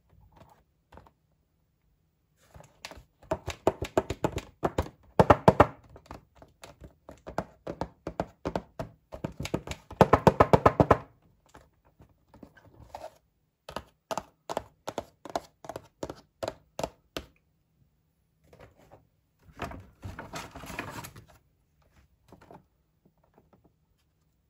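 Fingers tap and click on a plastic toy box.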